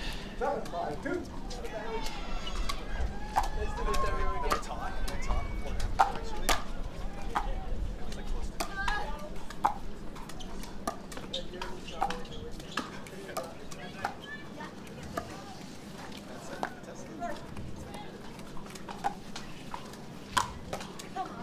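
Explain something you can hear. Paddles pop sharply against a plastic ball in a rally.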